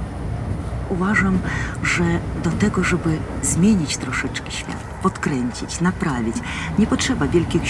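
A middle-aged woman speaks calmly and close to the microphone.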